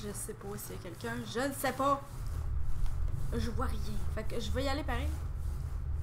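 A young woman talks into a microphone with animation.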